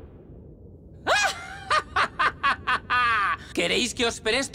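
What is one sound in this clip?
A young man laughs loudly and maniacally.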